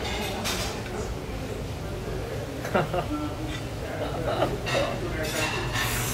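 A metal fork clinks against a plate.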